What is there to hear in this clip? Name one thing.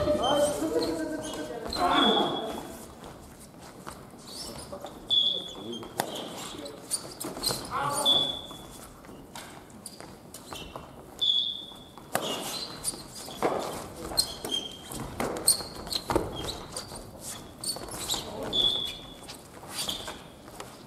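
Young people call out and talk loudly across the hall.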